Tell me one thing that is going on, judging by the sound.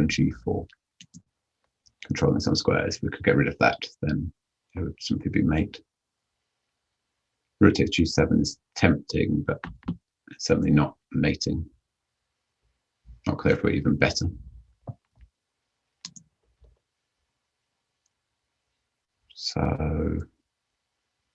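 A man talks calmly and thoughtfully into a close microphone, with pauses.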